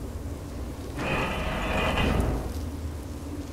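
A metal gate door swings open with a loud creak.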